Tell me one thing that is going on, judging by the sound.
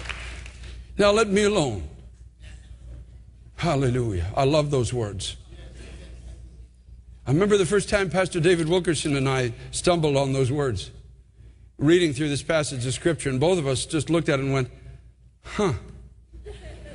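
A man speaks calmly over a microphone, pausing between phrases.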